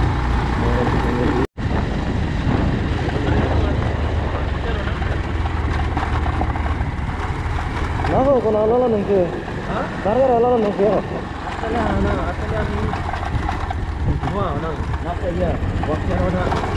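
Tyres crunch over loose gravel and stones.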